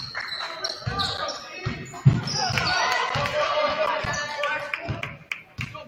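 A crowd of spectators murmurs and calls out in a large echoing gym.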